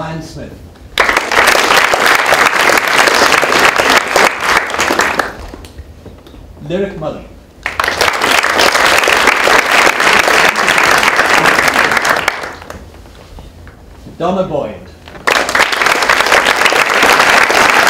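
A group of people clap loudly in bursts.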